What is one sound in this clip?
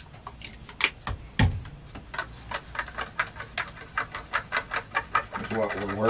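A small hand tool clicks rapidly.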